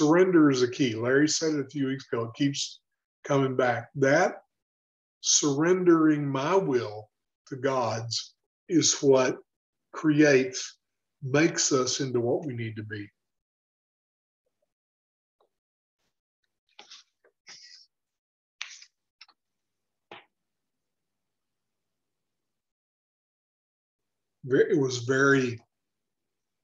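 An elderly man talks with animation over an online call.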